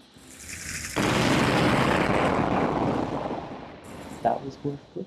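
A loud explosion rumbles and crackles, then fades.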